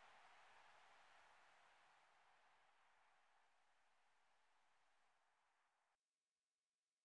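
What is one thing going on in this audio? A stadium crowd roars and slowly fades.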